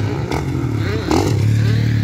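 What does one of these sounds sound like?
A motocross bike revs hard as it takes off over a jump.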